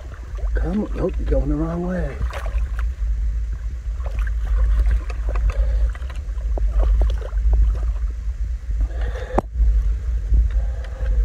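Shallow water gurgles and splashes over rocks.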